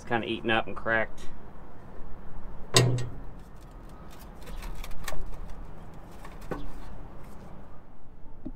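Metal parts clank and rattle as they are handled.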